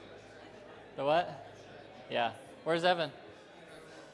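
A man speaks in short bursts through a microphone in a large echoing hall.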